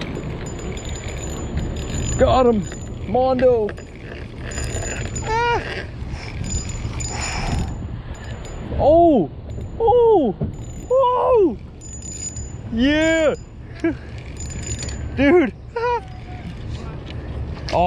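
A fishing reel clicks and whirs as its handle turns.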